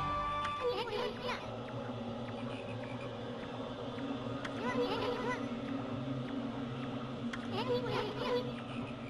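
Squeaky, chirping game blips babble in short bursts.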